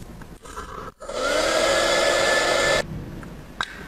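A can of compressed air hisses loudly in a short blast.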